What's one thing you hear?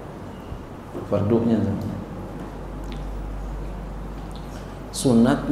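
A middle-aged man speaks calmly into a microphone in a slightly echoing room.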